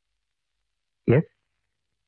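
A man speaks briefly into a phone.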